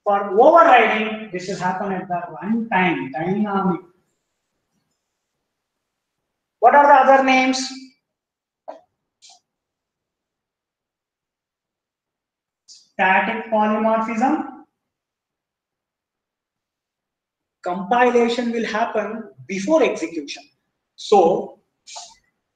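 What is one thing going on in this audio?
A young man lectures calmly through a microphone, in short bursts with pauses.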